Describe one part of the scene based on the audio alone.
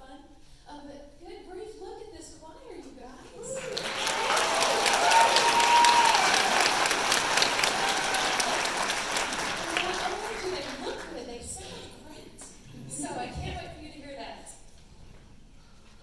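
A woman speaks calmly into a microphone, heard through loudspeakers in a large echoing hall.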